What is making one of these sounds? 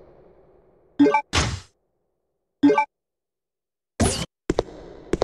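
Menu tones beep briefly.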